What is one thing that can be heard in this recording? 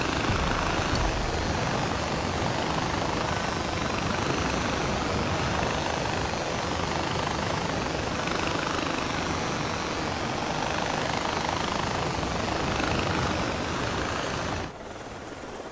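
A pulley whirs loudly along a taut cable.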